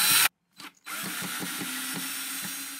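A cordless drill whirs steadily as it drives a screw.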